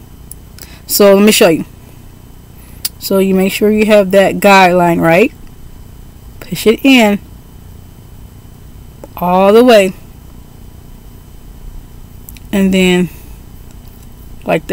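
A woman talks calmly and close by, in short phrases with pauses.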